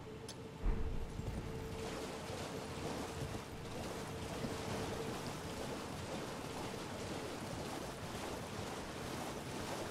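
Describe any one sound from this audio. Water splashes under a galloping horse's hooves.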